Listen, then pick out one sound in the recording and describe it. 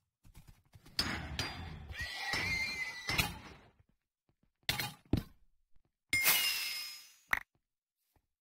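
A sword strikes repeatedly with short, sharp hits.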